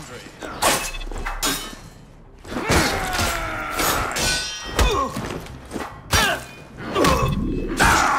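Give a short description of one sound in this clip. Swords clash and ring in a fast fight.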